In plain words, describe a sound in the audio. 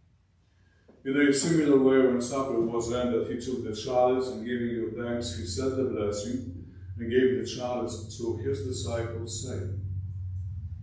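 A man speaks calmly through a microphone in an echoing room.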